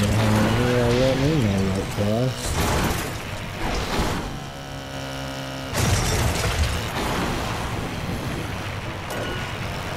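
Race car engines whine and roar from a video game.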